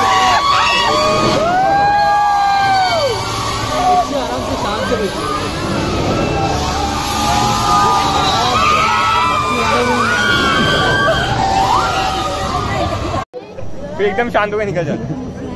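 A crowd of young riders screams and shrieks with excitement.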